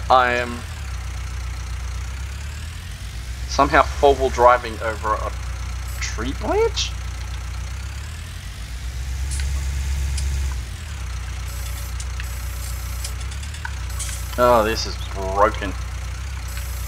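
A tractor engine idles with a steady low drone.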